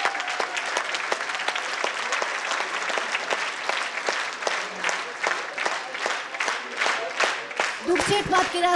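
An audience claps steadily in rhythm in a large hall.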